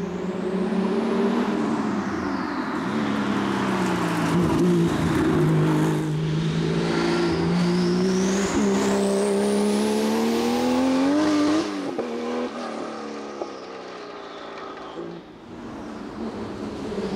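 A race car engine roars loudly, revving hard as the car approaches and speeds past, then fades into the distance.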